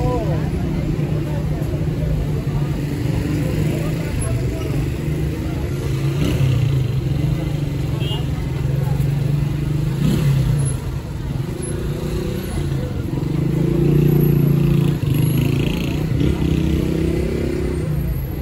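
Footsteps walk along a pavement.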